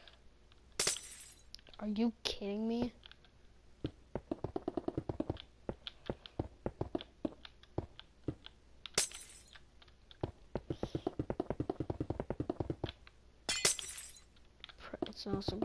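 Blocks thud into place in a video game.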